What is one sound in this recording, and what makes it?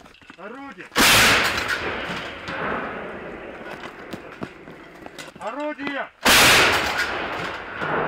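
A large artillery gun fires with a deafening boom that echoes away.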